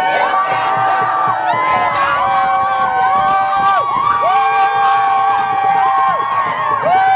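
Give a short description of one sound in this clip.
A crowd of men and women chants and sings loudly outdoors.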